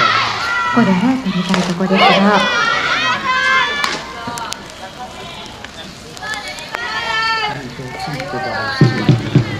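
Young women chant and cheer in chorus outdoors, from a short distance.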